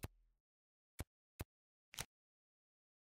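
Short electronic clicks sound as a phone menu is browsed.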